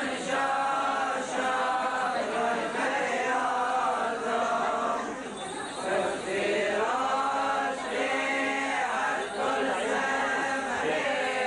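A crowd of men and women sing a slow hymn together, close by.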